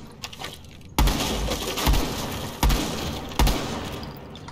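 Gunshots bang loudly in quick single bursts.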